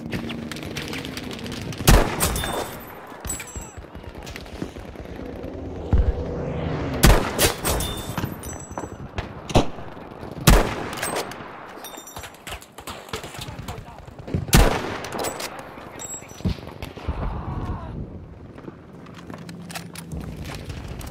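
A rifle bolt clicks and rattles.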